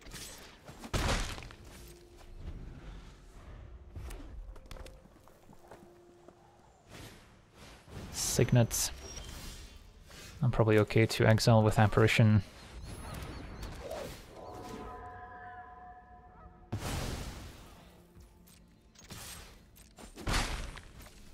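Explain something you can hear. Game sound effects whoosh and thud as cards are played.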